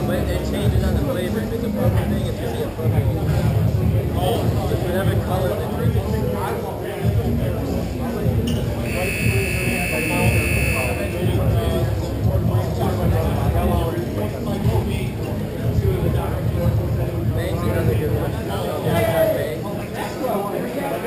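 Skate wheels roll and scrape on a hard rink floor.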